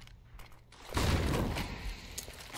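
A flash grenade goes off with a sharp bang.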